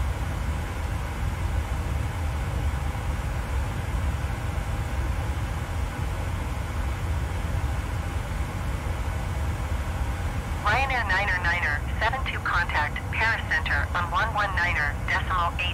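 A jet engine drones low and steady throughout.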